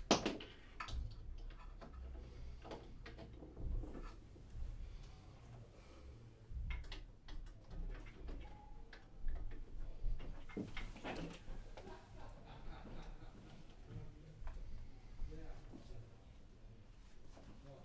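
Equipment clicks and clatters close by.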